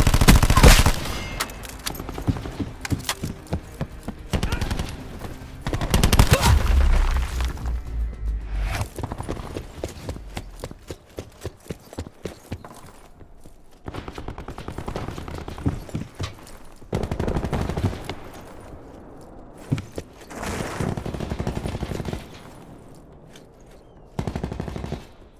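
Footsteps thud quickly on hard ground.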